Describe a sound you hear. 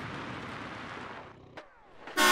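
Car tyres rumble over loose gravel.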